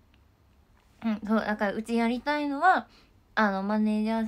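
A young woman speaks close up, in a high, animated voice.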